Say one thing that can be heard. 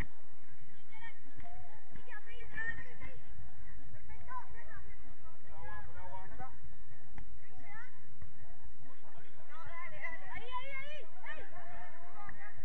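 Young women shout to each other across an open field at a distance.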